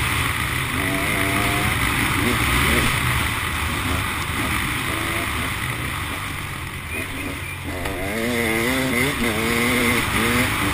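A motorcycle engine revs and changes pitch up close.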